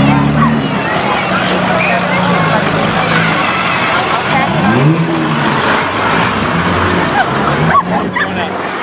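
A truck engine rumbles low as the truck rolls slowly past.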